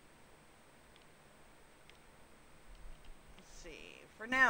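Soft game menu clicks tick now and then.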